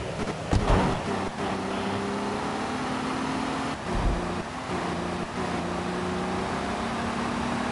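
A car engine hums as a car drives along a road.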